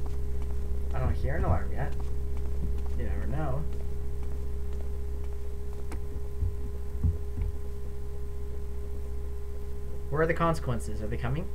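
A young man speaks quietly into a close microphone, in short bursts.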